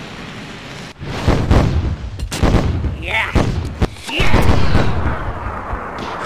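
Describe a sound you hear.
A fiery explosion booms and rumbles.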